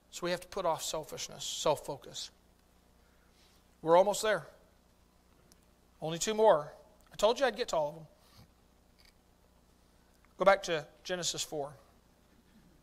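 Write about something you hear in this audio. A middle-aged man speaks slowly and with pauses into a microphone, in a room with a slight echo.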